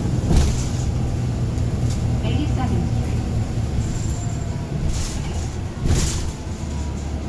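The bus rattles and clunks over the road.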